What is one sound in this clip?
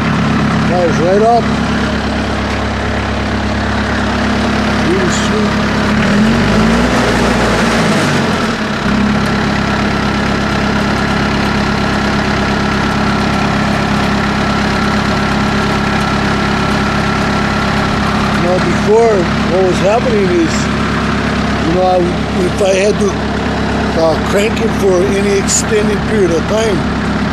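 An engine hums steadily close by.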